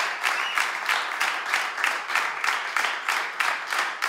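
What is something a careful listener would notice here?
An audience claps in rhythm.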